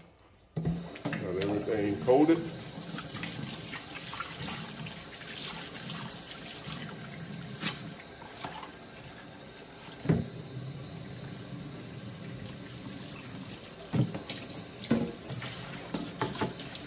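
Water runs steadily from a tap into a metal sink.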